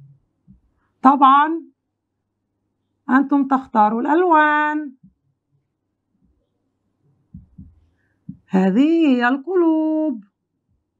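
A woman speaks in a lively, sing-song voice nearby.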